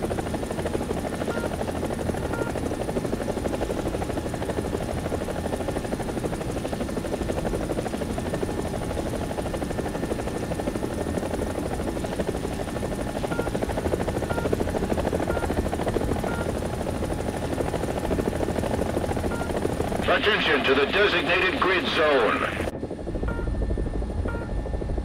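A helicopter's rotor thumps steadily as it flies low.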